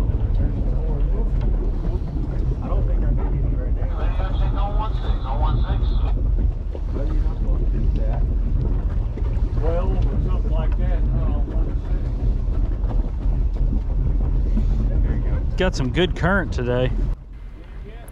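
Wind buffets the microphone with a steady low rumble outdoors on open water.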